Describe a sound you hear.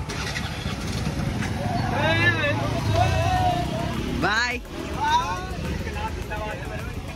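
Motor scooter engines rumble and rev as a group rides past on a road.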